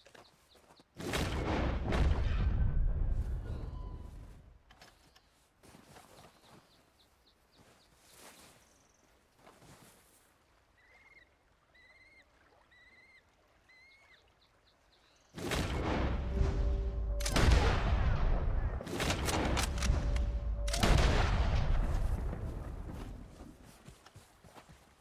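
A rifle fires loud shots that echo and roll away.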